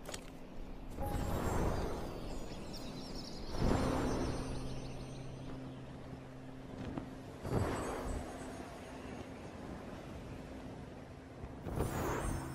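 Wind rushes past in repeated swelling whooshes.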